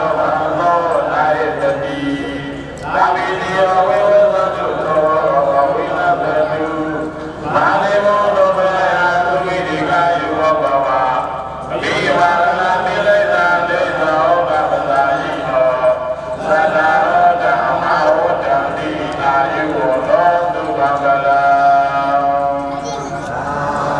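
A large group of men and women chant prayers together in unison, in long steady phrases.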